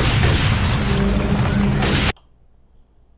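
Gunfire rattles loudly in a game.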